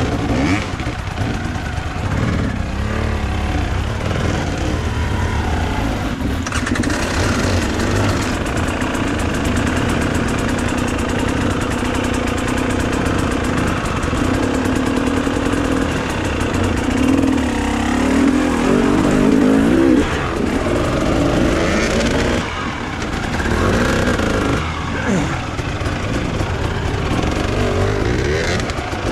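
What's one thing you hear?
A dirt bike engine idles and revs close by.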